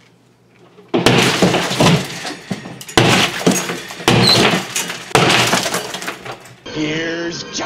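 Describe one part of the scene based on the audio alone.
Drywall cracks and crumbles as something smashes through it.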